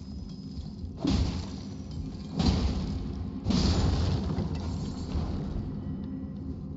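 Crystal creatures shatter with loud bright bursts.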